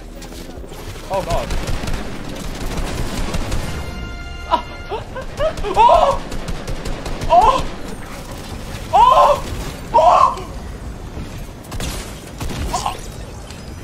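A young man shouts with excitement close to a microphone.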